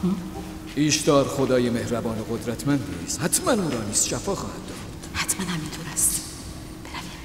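A woman speaks with emotion close by.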